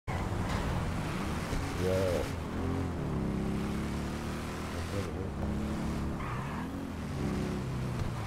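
A motorcycle engine roars steadily, rising and falling in pitch as it revs.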